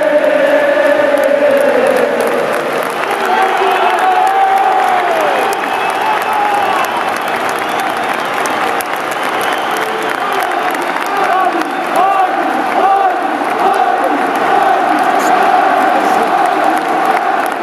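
A large stadium crowd sings and chants loudly.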